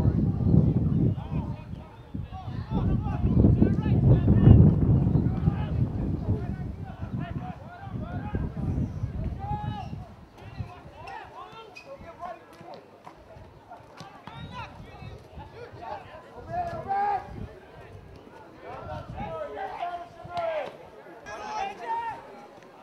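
Young men shout to each other across an open field.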